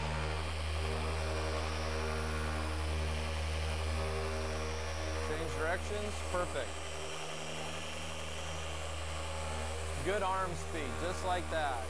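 A machine polisher hums steadily.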